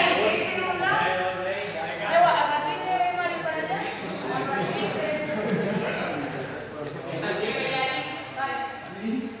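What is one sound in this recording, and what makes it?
Young women talk with animation in a large echoing hall.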